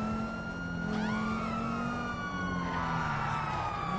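A police siren wails up and down nearby.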